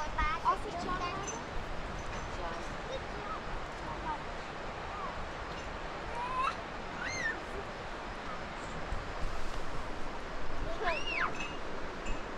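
A young child calls out in a high voice nearby.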